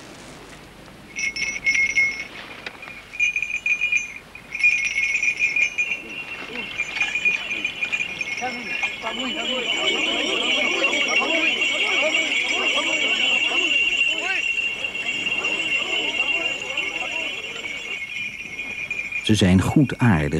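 A crowd of men shouts and chants excitedly.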